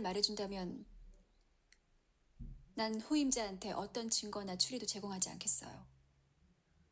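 A young woman speaks calmly and firmly, close by.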